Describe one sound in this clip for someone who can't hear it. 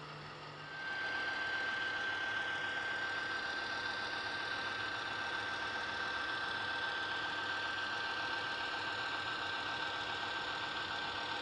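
A model train locomotive rumbles steadily along its track.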